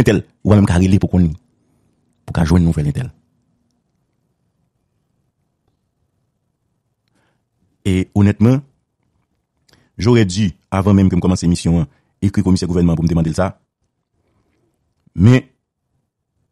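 A middle-aged man speaks on a phone line in bursts, with pauses between.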